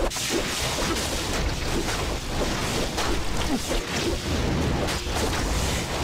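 Creatures screech and groan as they are struck.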